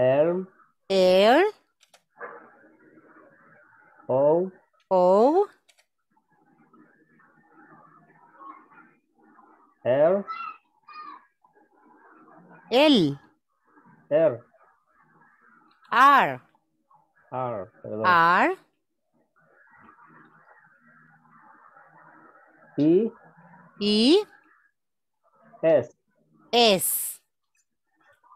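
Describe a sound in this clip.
A woman speaks slowly and clearly over an online call, spelling out letters.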